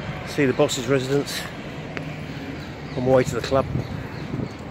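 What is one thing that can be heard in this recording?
A middle-aged man talks close to the microphone, outdoors.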